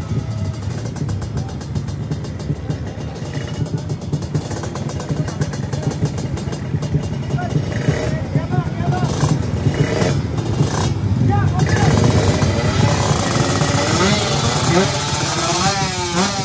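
Motorcycle engines idle and rev loudly nearby.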